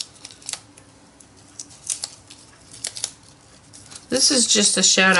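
Paper rustles and crinkles softly under fingers.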